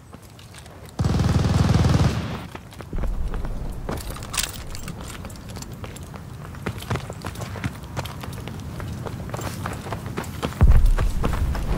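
A double-barrel shotgun fires with a heavy boom.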